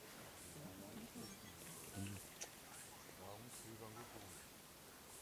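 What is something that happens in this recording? Lionesses tear and chew at a warthog carcass.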